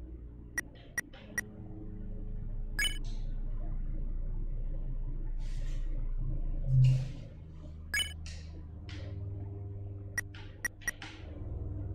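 Short electronic menu blips sound now and then.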